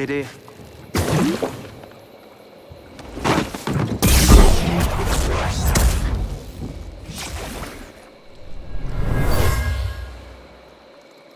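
Heavy thuds and whooshes sound as a fight breaks out.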